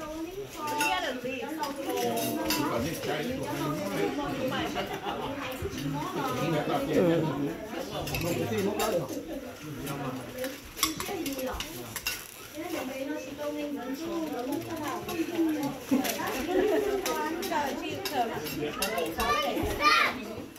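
Several men and women talk and chat at once nearby.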